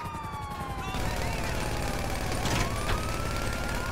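A helicopter flies overhead.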